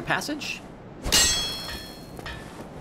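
A sword swings through the air with a whoosh.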